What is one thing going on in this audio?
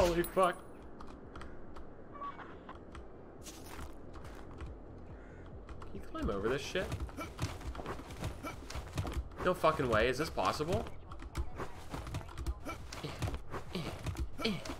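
Footsteps crunch on grass and gravel.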